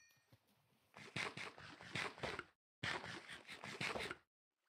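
A video game character crunches while eating.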